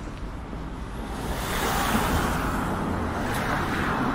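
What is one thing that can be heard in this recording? A car drives past on the street, growing louder.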